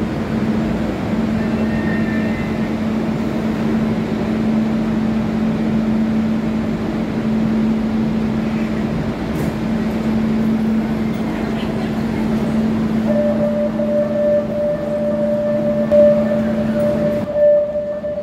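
A train hums steadily while standing at a platform.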